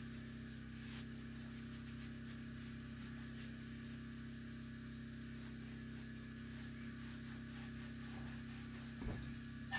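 A cloth rubs and squeaks against glass.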